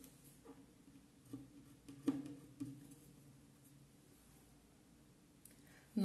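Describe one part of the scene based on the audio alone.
A pencil scratches lightly on fabric.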